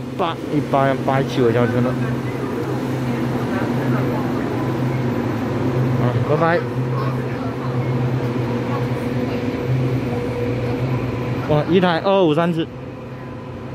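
A train engine hums steadily close by.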